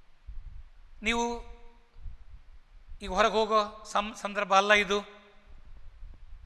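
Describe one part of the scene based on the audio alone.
An elderly man speaks with animation through a clip-on microphone.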